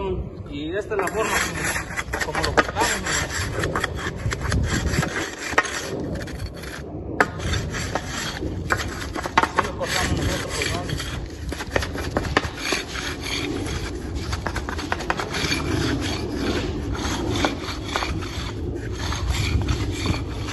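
A hand tool scrapes steadily along wet concrete.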